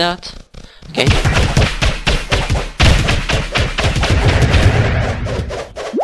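A sword strikes monsters in rapid blows.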